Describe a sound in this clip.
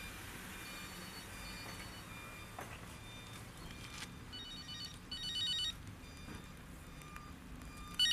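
A woman speaks anxiously into a phone nearby.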